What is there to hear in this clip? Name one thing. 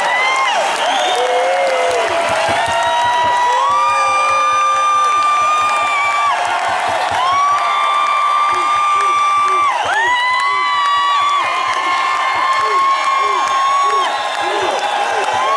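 A band plays loud music.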